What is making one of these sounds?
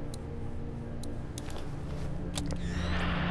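A radio switch clicks.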